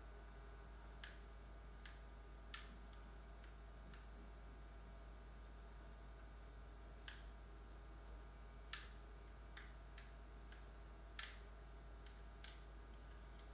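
Footsteps tap faintly through a television speaker.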